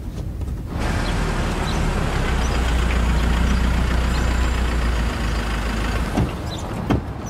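A car engine rumbles as a vehicle pulls up and stops.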